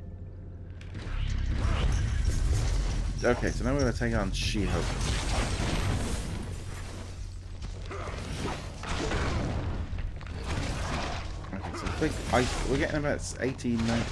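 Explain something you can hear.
Heavy punches and crashes thud in a fight.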